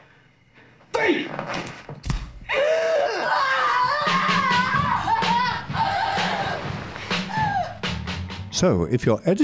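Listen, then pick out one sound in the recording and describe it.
A man shouts urgently.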